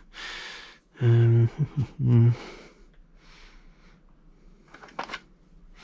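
A plastic case clicks and rattles as it is handled.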